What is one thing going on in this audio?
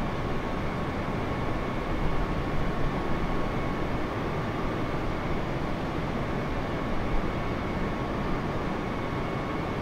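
Wind rushes loudly past a plane.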